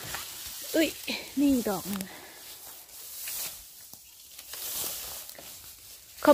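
Dry grass rustles and crunches underfoot.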